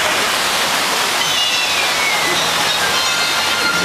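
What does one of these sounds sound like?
Water rushes and splashes loudly.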